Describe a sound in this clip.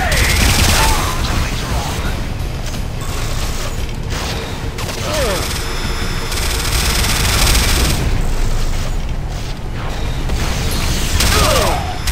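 A rapid-fire machine gun fires loud bursts.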